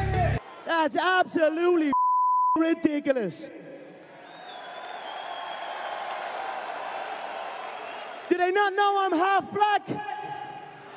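A man shouts excitedly into a microphone, heard through loudspeakers.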